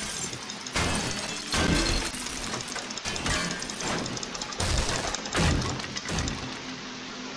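A club bashes against wooden boards, which crack and break apart.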